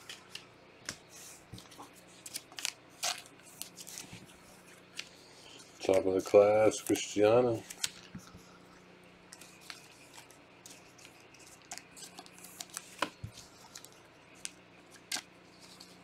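Cards tap and slide against each other as they are handled.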